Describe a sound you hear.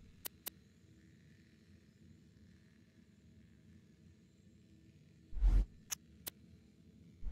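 Short electronic clicks tick now and then.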